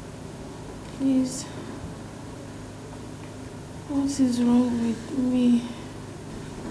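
A young woman speaks weakly and close by.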